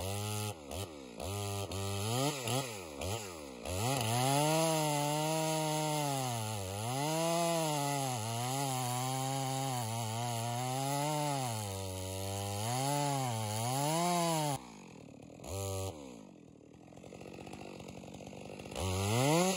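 A chainsaw engine roars close by, revving up and down as it cuts into wood, then drops to an idle before revving again.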